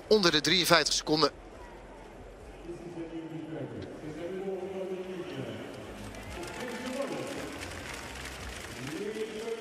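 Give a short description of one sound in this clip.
A large crowd cheers and applauds in an open stadium.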